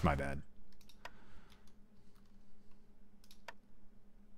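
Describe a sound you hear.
Soft game interface clicks sound.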